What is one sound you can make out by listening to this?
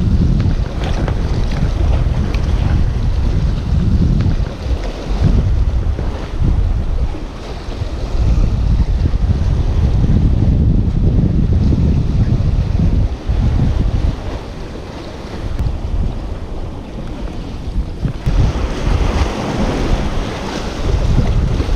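Wind blows hard across a microphone outdoors.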